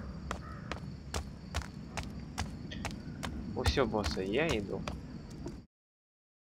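Footsteps tread at a steady walking pace on hard ground.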